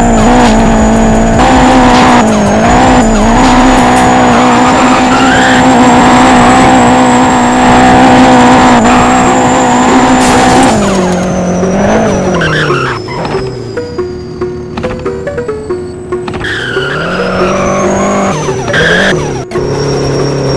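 A car engine roars and revs hard.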